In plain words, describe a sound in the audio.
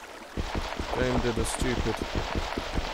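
A young man speaks briefly and casually into a microphone.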